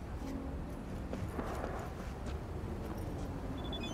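A car door opens and shuts with a thud.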